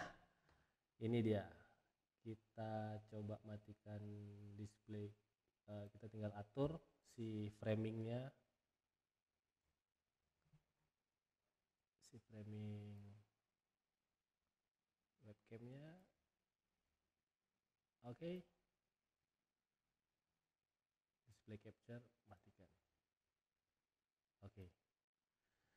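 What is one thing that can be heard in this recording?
A man talks with animation close to a microphone, pausing often.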